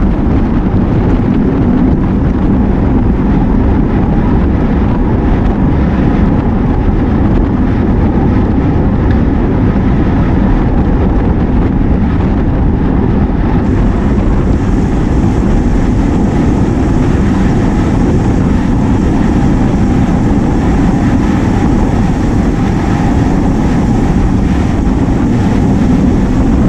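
Bicycle tyres hum on smooth pavement.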